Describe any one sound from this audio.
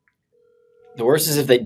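A man speaks loudly over an online call.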